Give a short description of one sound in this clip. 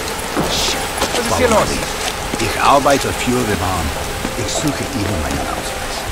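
A young man speaks urgently, close by.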